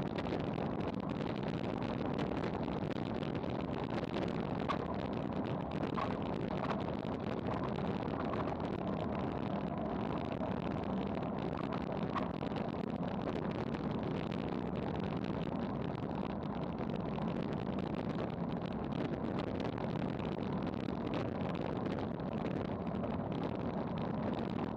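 Wind rushes loudly over the microphone outdoors.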